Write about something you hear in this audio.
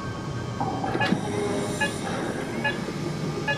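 An electronic device beeps several times.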